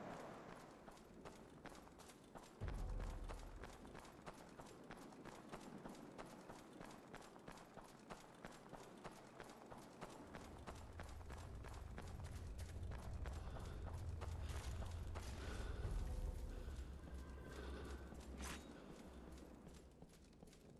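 Armoured footsteps crunch quickly over snow and stone.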